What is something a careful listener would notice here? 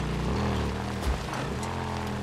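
A motorcycle crashes to the ground with a thud.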